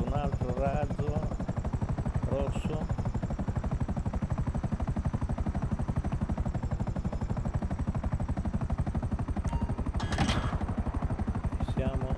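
A helicopter engine whines.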